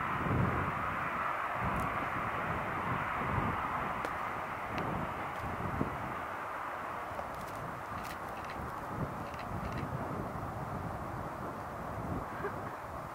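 A jet airliner's engines roar steadily as it rolls past and the sound slowly eases.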